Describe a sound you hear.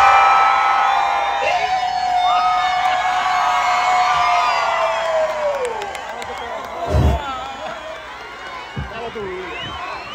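A large crowd chants and cheers loudly outdoors.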